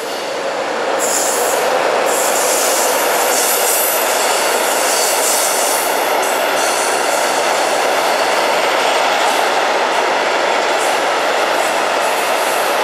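Wagon wheels clatter and squeal on the rails.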